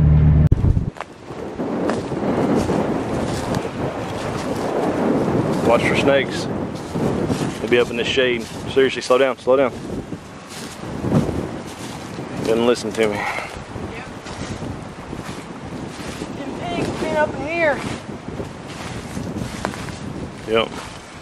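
Footsteps crunch on dry grass and twigs.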